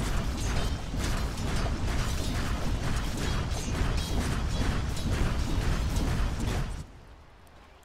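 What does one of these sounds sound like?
Video game battle effects clash and crackle rapidly, then suddenly cut away.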